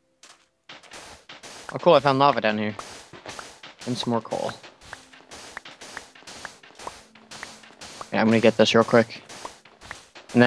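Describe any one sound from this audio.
A video game shovel sound effect crunches into sand over and over.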